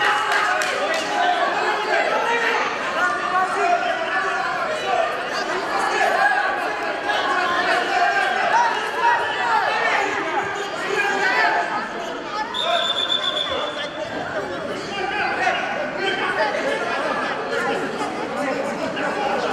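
A large crowd of children chatters and shouts in an echoing hall.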